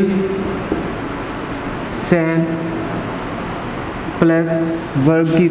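A man speaks in a steady, lecturing voice nearby.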